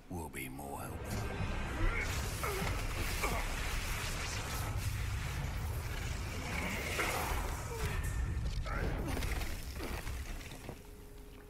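A magical blast roars and crackles.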